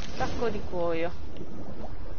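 A young woman speaks briefly and animatedly, close to a microphone.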